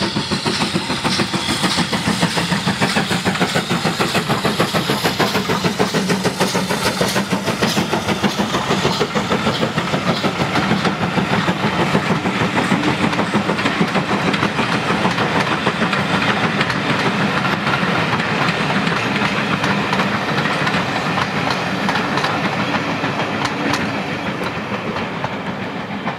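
A steam locomotive chuffs hard in a rapid, steady beat, slowly growing more distant.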